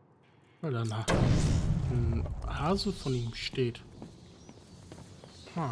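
An explosion booms and rumbles loudly.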